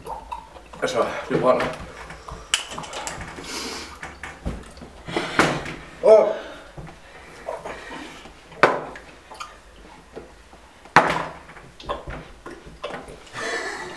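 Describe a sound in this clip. Liquid pours from a carton into a glass.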